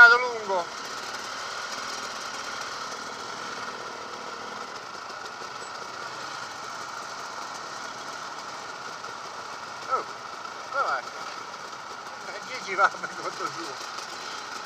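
A dirt bike engine revs briefly, rising and falling in pitch.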